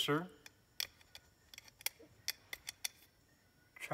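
Plastic parts click and rattle in a man's hands.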